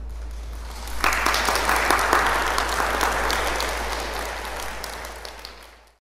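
An audience applauds in an echoing hall.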